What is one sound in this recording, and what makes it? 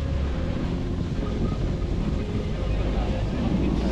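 Skis and a snowboard scrape over packed snow.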